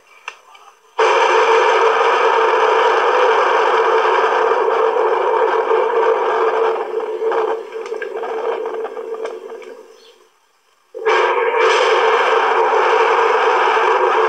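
Sound plays through a small phone loudspeaker.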